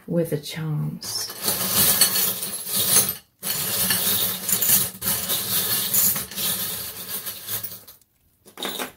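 Small stones rattle and clatter as a hand stirs them in a bowl.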